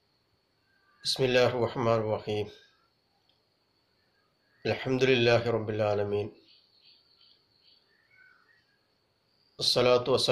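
A middle-aged man speaks calmly and close up, with pauses.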